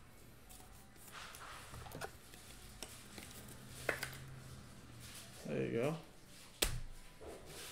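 A plastic card holder clicks and rustles in hands.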